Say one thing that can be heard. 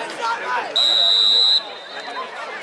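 A referee's whistle blows once, long and shrill.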